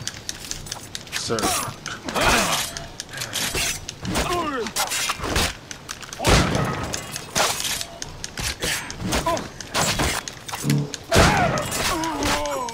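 Swords clash and ring repeatedly.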